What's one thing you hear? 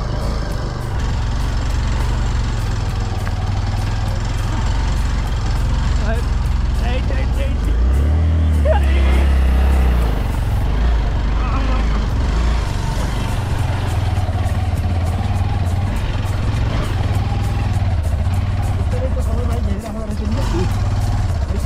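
A motorcycle engine idles and rumbles low throughout.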